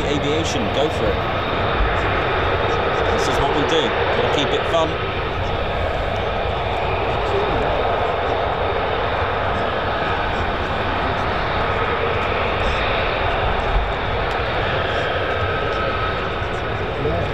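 A jet engine roars steadily nearby.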